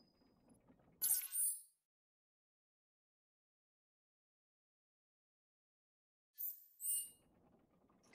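Short electronic chimes sound twice.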